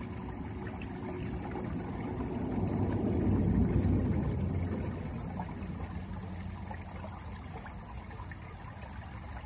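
Foam bubbles fizz and pop.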